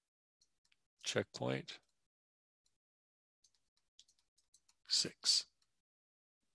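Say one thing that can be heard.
A man speaks calmly through a headset microphone, in short bursts.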